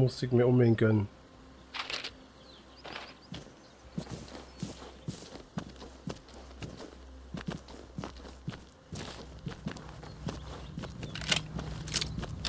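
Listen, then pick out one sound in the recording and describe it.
Footsteps crunch on dry ground.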